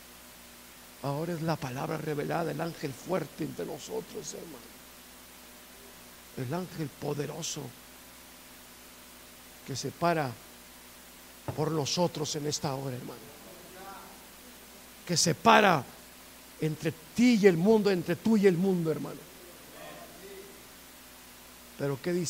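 A middle-aged man speaks with animation through a microphone, in bursts with pauses, in an echoing room.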